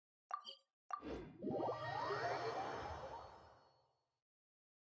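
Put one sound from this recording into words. A light chiming flourish rises and fades.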